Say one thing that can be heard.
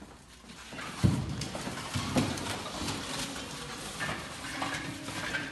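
Wooden blocks knock and clatter against each other.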